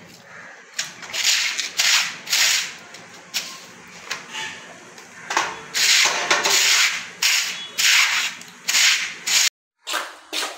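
A stiff brush scrubs hard across concrete in quick strokes.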